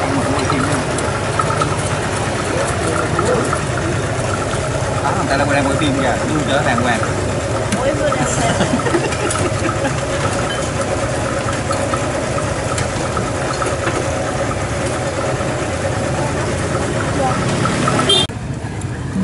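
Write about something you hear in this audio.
A man chats and laughs nearby.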